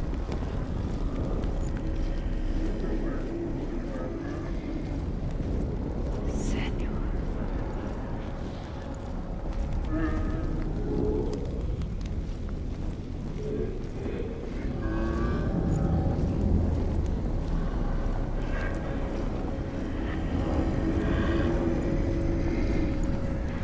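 Footsteps shuffle slowly on stone.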